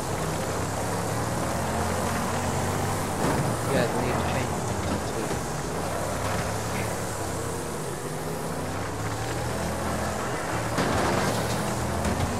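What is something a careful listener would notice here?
Tyres slide and skid on dirt.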